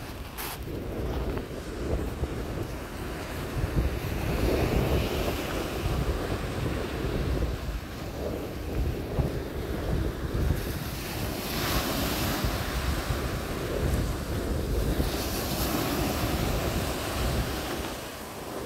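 Wind rumbles across the open shore.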